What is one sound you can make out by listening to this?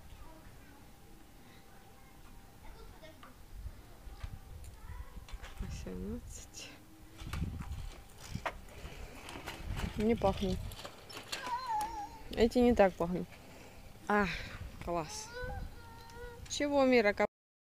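A child's tricycle rolls over pavement.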